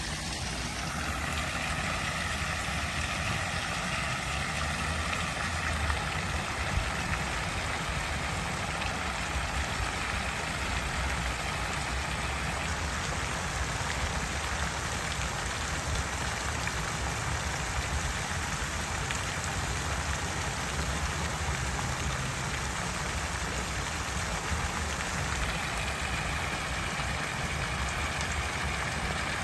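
Water from a fountain splashes and patters steadily into a pool outdoors.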